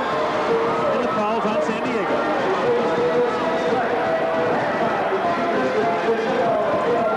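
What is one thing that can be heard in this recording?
A large crowd murmurs and cheers in an echoing indoor arena.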